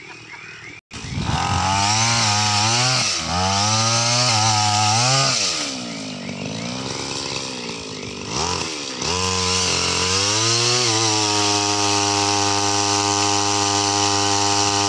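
A two-stroke pole saw engine revs up and down.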